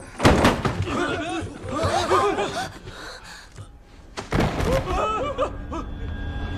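Young women scream in panic.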